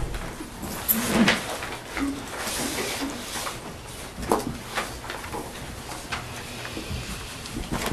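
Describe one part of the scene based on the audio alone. Papers rustle and folders are shuffled on a table.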